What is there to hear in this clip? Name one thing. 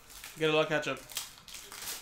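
A foil card pack crinkles as hands open it.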